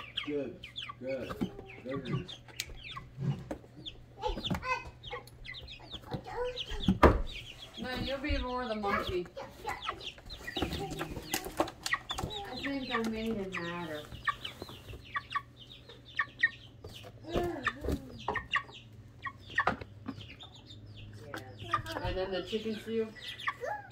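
A chicken clucks softly.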